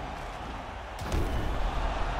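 A kick lands with a heavy thud.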